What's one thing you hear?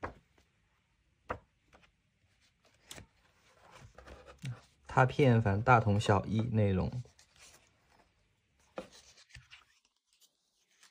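Paper pages rustle and flip as a book's pages are turned.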